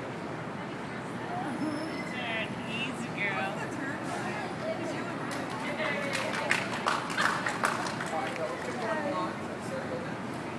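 Women chat nearby outdoors.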